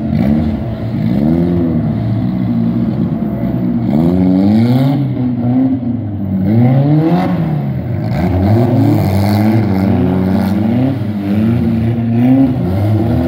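Car engines rev hard, rising and falling again and again.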